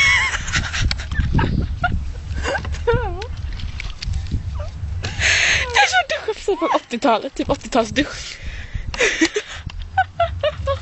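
A young woman talks close by in a lively way.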